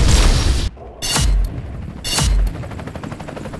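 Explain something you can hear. Guns fire in short, loud bursts.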